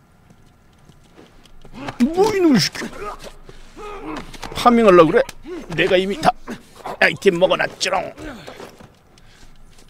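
Two bodies scuffle and thrash in a struggle.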